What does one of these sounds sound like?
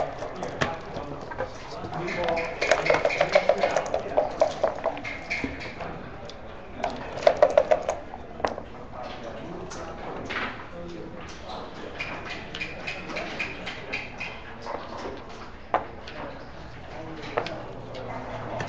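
Plastic checkers clack as they are moved across a board.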